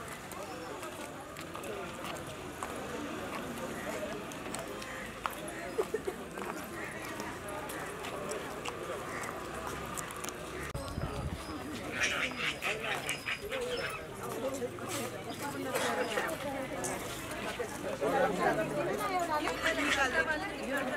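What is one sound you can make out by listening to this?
A crowd of women chatter outdoors.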